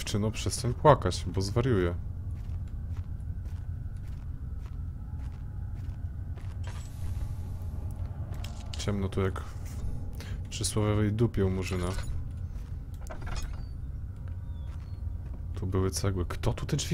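A man talks calmly and close into a microphone.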